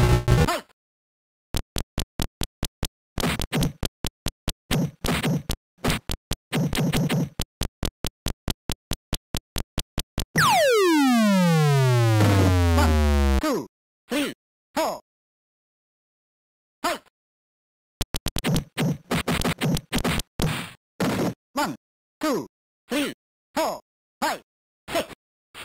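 Electronic game punches thump in quick bursts.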